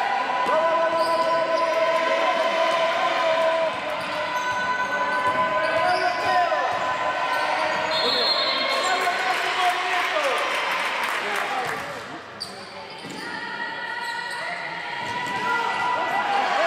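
Voices of young women call out in a large echoing hall.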